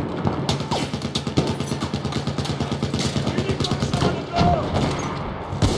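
A rifle bolt clacks as it is worked back and forward.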